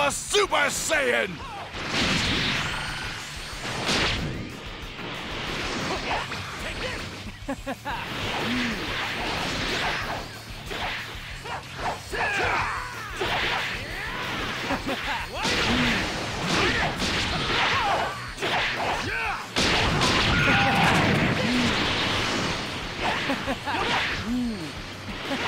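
Energy blasts whoosh and crackle in a fast fight.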